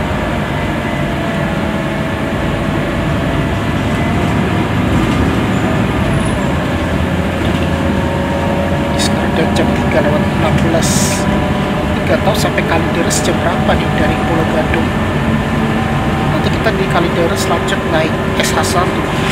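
A bus engine hums steadily as the bus drives along.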